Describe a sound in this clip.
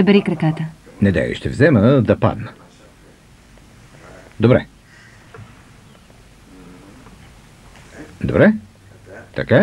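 A man speaks nearby in a calm, low voice.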